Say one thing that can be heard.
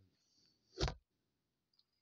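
A phone knocks against a table.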